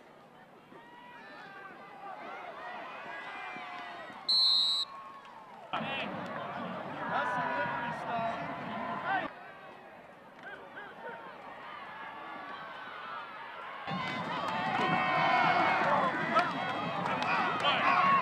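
A crowd cheers and shouts loudly in an open stadium.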